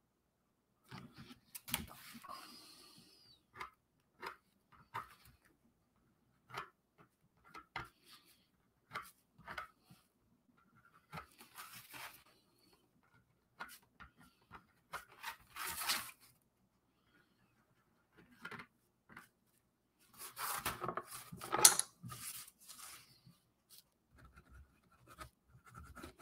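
A marker squeaks and scratches across cardboard in short strokes.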